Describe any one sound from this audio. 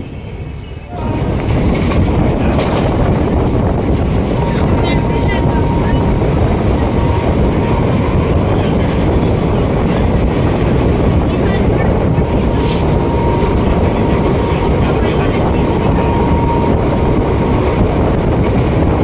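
A train rumbles and rattles loudly along the tracks, heard from on board.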